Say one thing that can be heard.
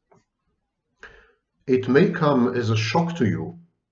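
A second middle-aged man speaks calmly over an online call.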